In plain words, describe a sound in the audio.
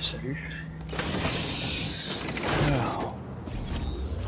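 A heavy metal gate creaks open.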